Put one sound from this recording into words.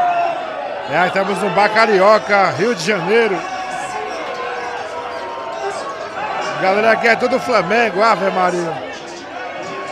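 A man shouts and chants loudly, close by.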